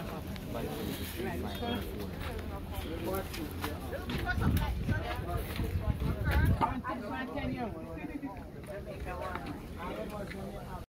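Several adults talk nearby.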